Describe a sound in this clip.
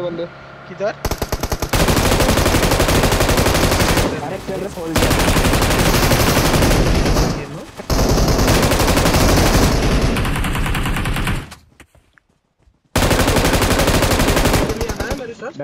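Rapid gunfire rattles in long bursts.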